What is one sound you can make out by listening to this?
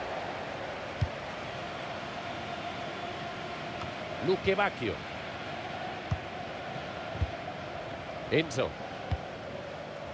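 A football thumps as players kick it.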